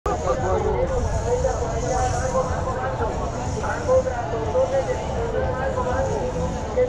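Men and women chatter nearby in an outdoor crowd.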